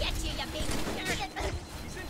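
A heavy melee blow thuds.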